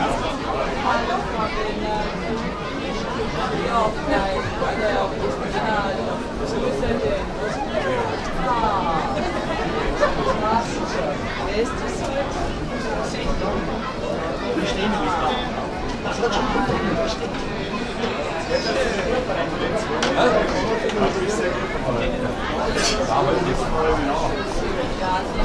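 A group of men sings together outdoors.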